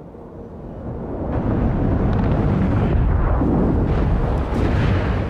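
A loud roar of fire and explosions swells up from below.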